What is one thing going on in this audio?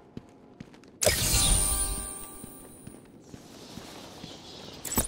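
Bats flutter in a sudden rush of wings.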